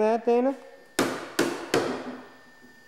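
A plastic toy hammer knocks on a toy workbench.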